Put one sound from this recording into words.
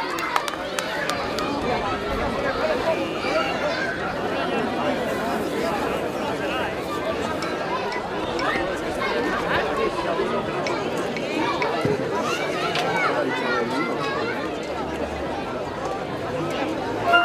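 A crowd of adults chatters and murmurs outdoors.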